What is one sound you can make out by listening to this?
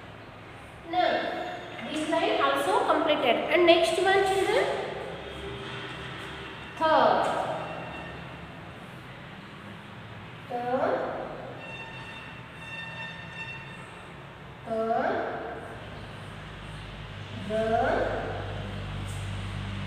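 A woman speaks clearly and calls out short sounds one at a time, close by.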